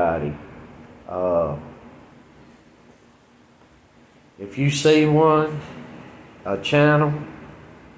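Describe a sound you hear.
A middle-aged man speaks calmly and slowly close to a microphone, with pauses.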